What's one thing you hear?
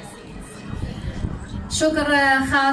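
A woman speaks into a microphone through a loudspeaker.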